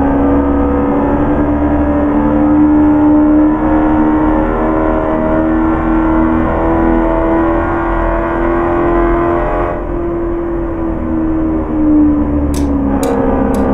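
A car engine hums steadily at cruising speed, rising and falling slightly.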